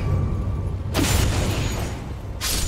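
An icy blast bursts with a sharp, hissing crackle.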